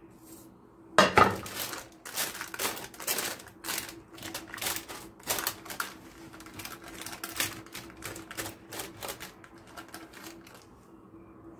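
A spatula pats and pushes a sticky, crunchy nut mixture.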